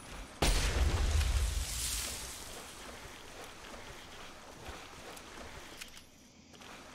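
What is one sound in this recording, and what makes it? A shotgun is reloaded with metallic clicks.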